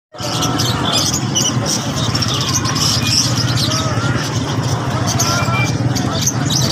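Many small caged birds chirp and twitter busily.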